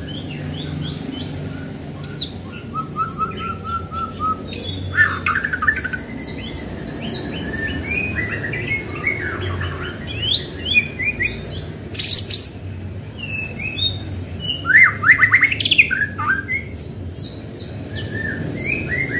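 A songbird sings a varied, rich melody of whistles and chirps close by.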